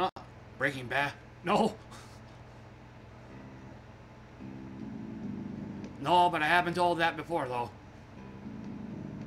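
An electric bass guitar plays low notes.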